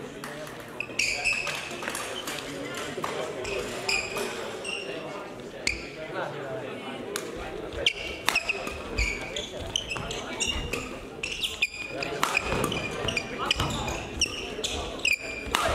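Sports shoes squeak sharply on a hard court floor.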